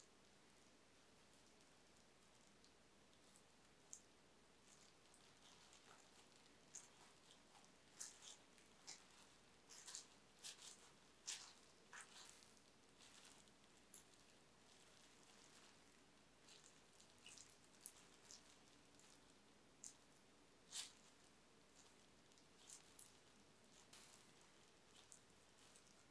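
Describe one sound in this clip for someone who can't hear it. Plastic gloves crinkle and rustle softly as hands press dough.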